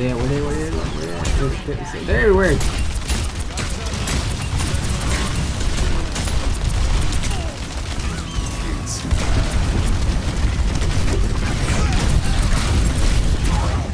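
Energy guns fire in rapid bursts with loud blasts and deep rumbling.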